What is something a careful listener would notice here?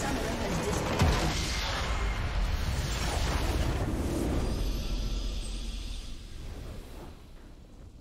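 A deep explosion rumbles and roars.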